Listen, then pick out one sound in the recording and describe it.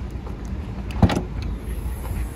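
A car's tailgate latch clicks open.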